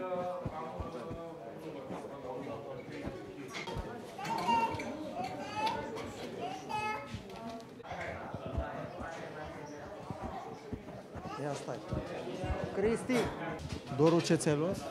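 Voices of a small crowd chatter.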